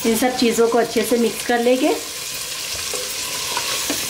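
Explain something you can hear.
A spoon scrapes and stirs food in a metal pot.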